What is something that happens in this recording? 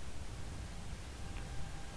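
Footsteps tread on wooden boards.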